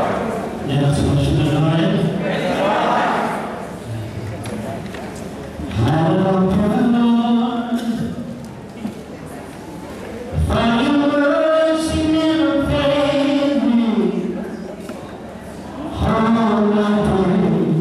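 A man sings slowly through a microphone and loudspeakers in a large echoing hall.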